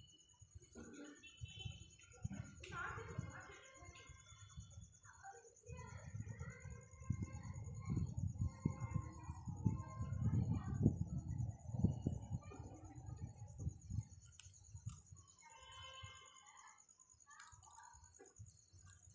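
A parrot squawks and chatters close by.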